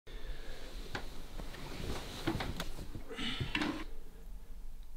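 Bedding rustles as a man sits up abruptly in bed.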